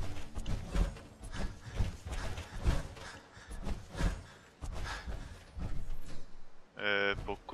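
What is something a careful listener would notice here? Heavy armoured footsteps thud and clank at a steady walking pace.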